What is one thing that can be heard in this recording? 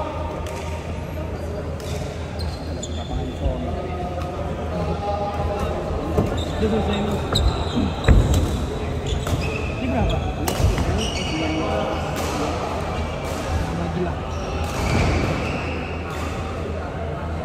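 Shoes squeak sharply on a wooden court floor.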